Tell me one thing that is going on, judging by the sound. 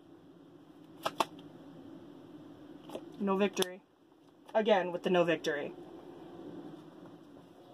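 A young woman shuffles a deck of cards with quick riffling flutters.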